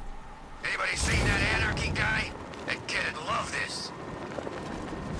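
Wind rushes past loudly during a fast glide.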